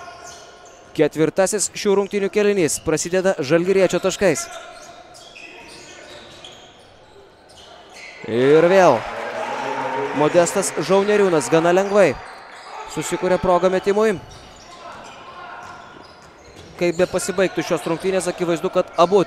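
A crowd chants and cheers loudly in an echoing hall.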